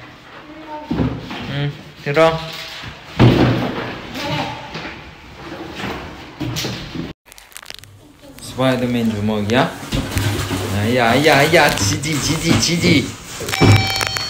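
Cardboard boxes scrape and thump on a hard floor.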